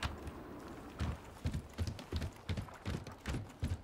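Heavy footsteps thud quickly on wooden planks.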